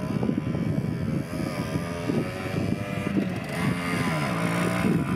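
A small motorcycle engine revs and sputters close by.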